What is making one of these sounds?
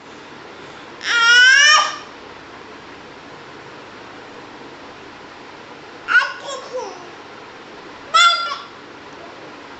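A young woman exclaims playfully up close in short bursts.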